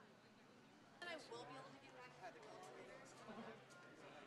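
Young people chatter and talk nearby.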